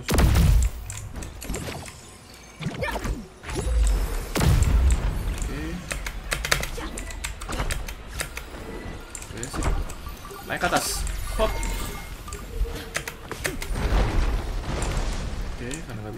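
Game sound effects thud and whoosh as a character climbs and strikes.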